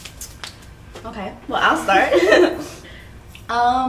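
Young women laugh together.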